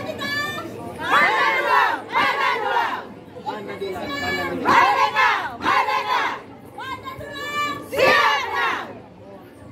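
A group of women shouts chants together loudly outdoors.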